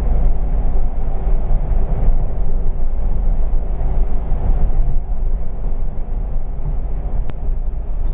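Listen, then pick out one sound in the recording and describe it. Tyres rumble steadily on asphalt.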